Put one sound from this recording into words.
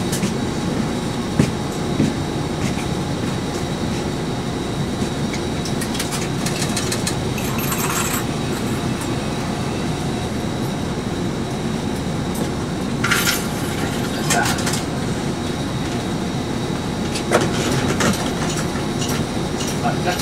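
A bus engine rumbles steadily from inside the bus.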